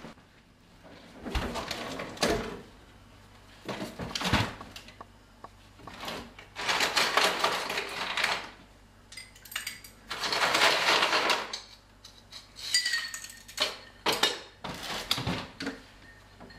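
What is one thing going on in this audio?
Someone rummages through items in a refrigerator.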